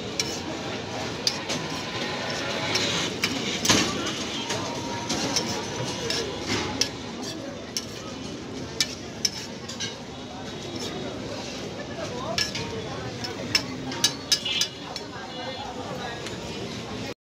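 A metal spatula scrapes and clanks on a hot griddle.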